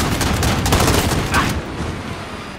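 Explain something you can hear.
Rapid gunfire rattles and bangs loudly.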